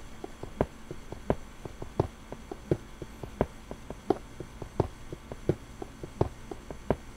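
A pickaxe chips at stone with quick, steady, rhythmic knocks.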